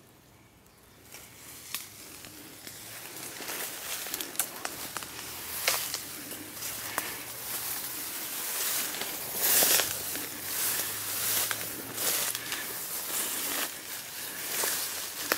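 Tall grass rustles and swishes as someone walks through it.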